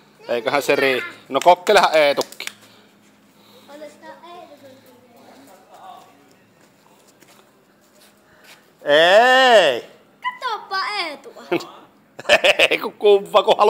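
A young boy talks and shouts excitedly close by.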